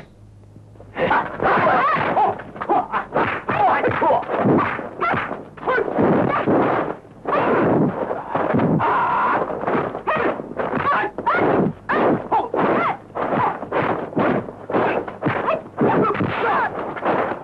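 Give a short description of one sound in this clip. Blows and kicks thud sharply in a fight.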